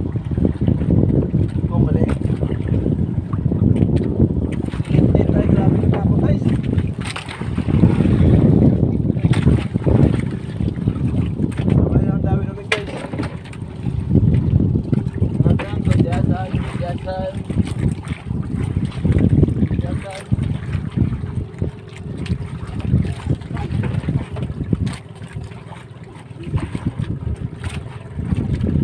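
Waves slap against a boat's hull.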